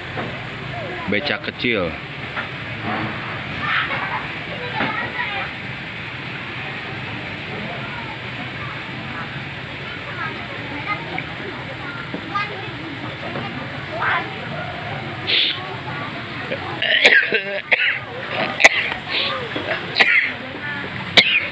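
Men and women talk at a distance outdoors.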